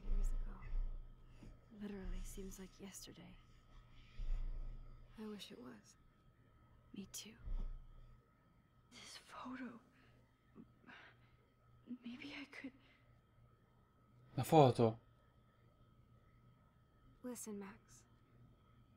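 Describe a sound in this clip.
A young woman speaks softly and hesitantly.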